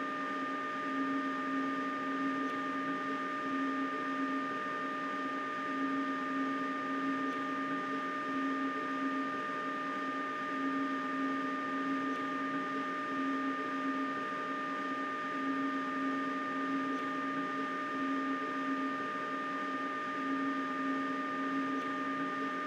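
A train's motor hums steadily while it runs along the track, with a low drone that swells and fades at an even pace.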